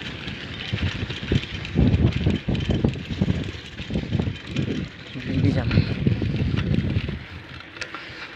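Wind buffets the microphone in gusts outdoors.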